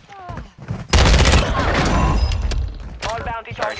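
Gunshots crack in a rapid burst.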